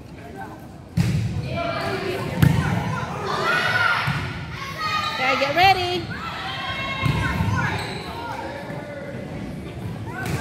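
Young women shout and cheer with excitement.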